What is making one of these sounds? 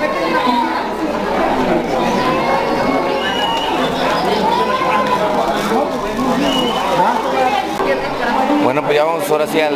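A group of women sing a hymn nearby.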